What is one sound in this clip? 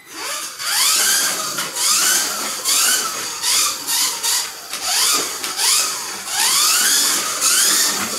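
A small electric toy car whines loudly, rising in pitch as it speeds up again and again.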